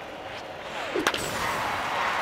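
A wooden bat cracks against a baseball.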